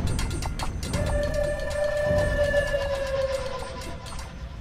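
A short, sad musical tone swells and then fades as a game is lost.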